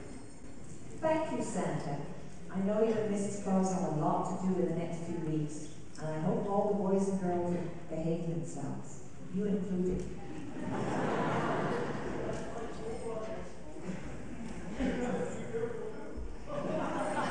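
An elderly woman speaks calmly into a microphone in a large echoing hall.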